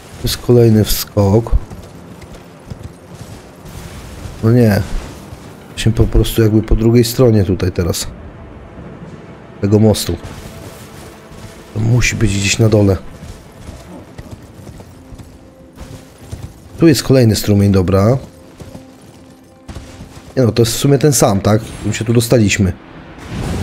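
A horse's hooves clatter at a gallop over rocky ground.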